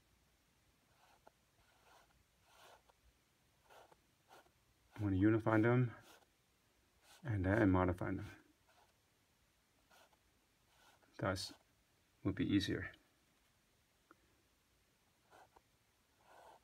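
A paintbrush softly brushes across canvas.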